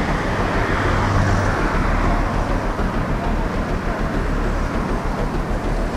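Traffic hums along a street nearby.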